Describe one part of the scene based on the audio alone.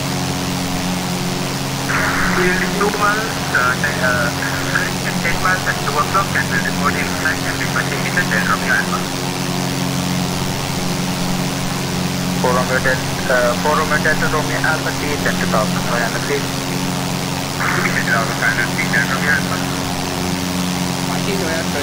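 A steady engine drone hums throughout.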